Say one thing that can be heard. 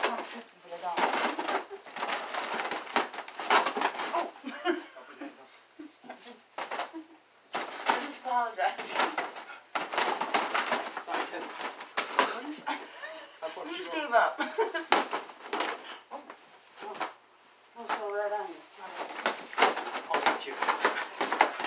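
A woman laughs and talks with animation.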